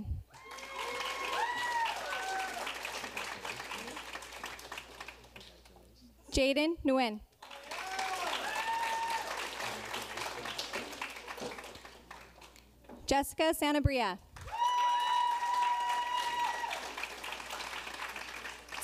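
An audience applauds and cheers.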